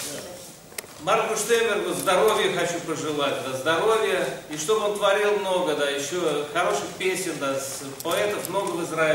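A middle-aged man speaks with animation to a room.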